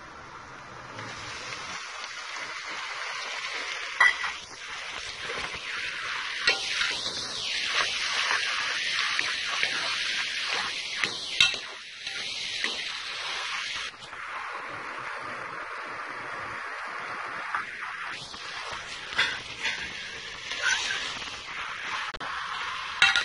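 Vegetables sizzle steadily in a hot pot.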